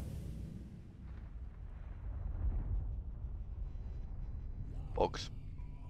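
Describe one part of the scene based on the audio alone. A fiery explosion roars with a deep rumble.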